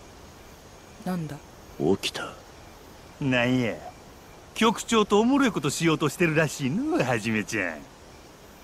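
A man speaks slowly and calmly, close by.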